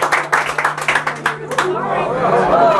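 An audience claps and applauds in a small room.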